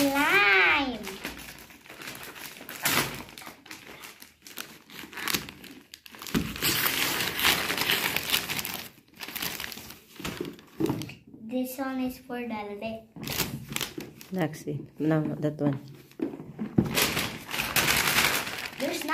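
Wrapping paper rustles and tears as a gift is unwrapped.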